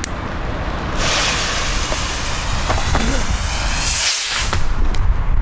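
A firework fuse fizzes and hisses sharply.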